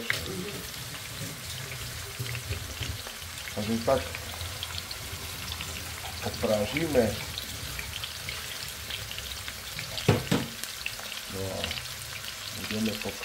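Meat sizzles and crackles softly in hot oil in a pan.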